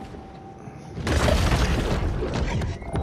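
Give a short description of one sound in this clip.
Underwater, a sea creature bites with a loud crunching burst.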